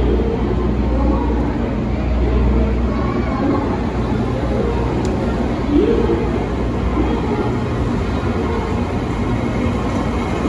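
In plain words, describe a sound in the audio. A train rolls slowly past with a steady low rumble.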